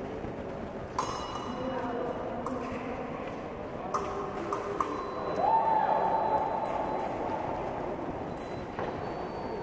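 Fencing blades clash and click sharply.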